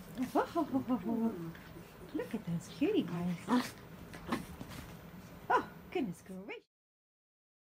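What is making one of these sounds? A small dog howls and yips in short, rising cries close by.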